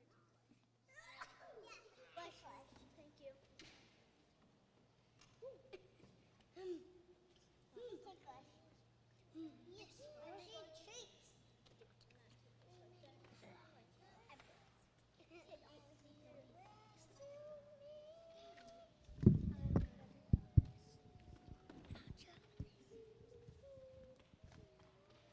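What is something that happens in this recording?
Children talk and call out in small voices.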